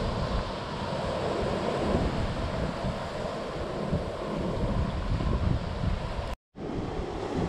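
Surf waves break and wash onto a sandy beach.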